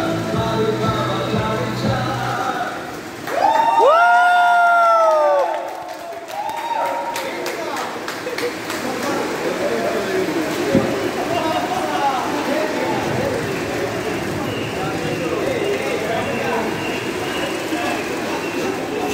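A group of men chatter and laugh nearby.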